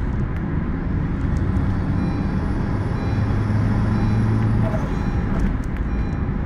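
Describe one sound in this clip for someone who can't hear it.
A car engine hums steadily as the car speeds along at high speed.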